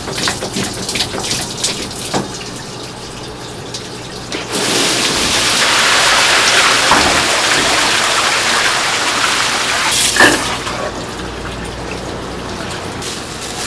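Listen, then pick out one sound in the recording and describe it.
Hands splash and rummage through wet meat in water.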